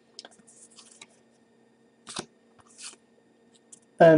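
Playing cards slide and snap against each other close by.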